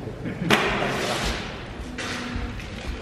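A rifle shot cracks sharply and echoes through a large hall.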